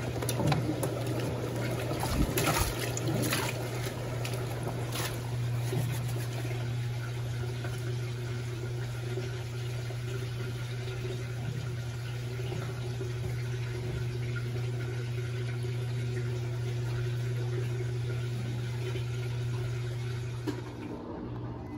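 Water and laundry slosh around in a washing machine drum.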